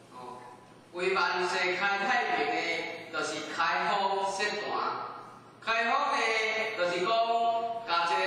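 A middle-aged man speaks calmly into a microphone, heard in a room.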